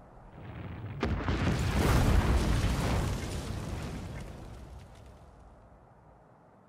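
A giant crashes down with a deep rumble.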